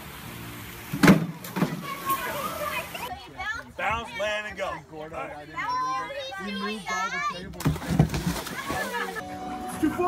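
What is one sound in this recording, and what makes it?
Water splashes loudly as a man lands in a pool.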